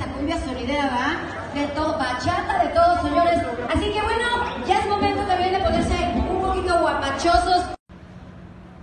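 A live band plays music loudly through speakers.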